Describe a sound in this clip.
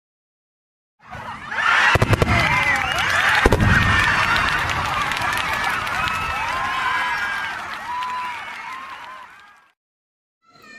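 Fireworks bang and crackle.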